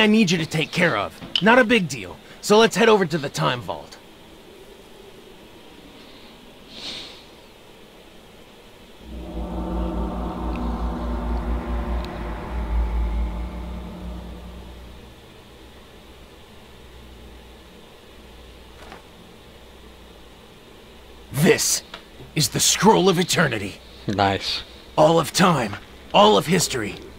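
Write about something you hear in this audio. A young man speaks calmly and gravely.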